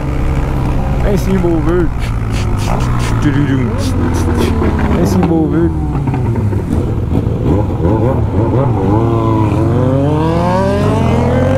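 A motorcycle engine hums and revs up and down as it rides.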